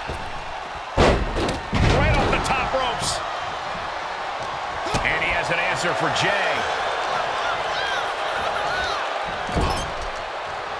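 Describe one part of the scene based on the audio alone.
Heavy thuds of bodies slamming onto a wrestling ring.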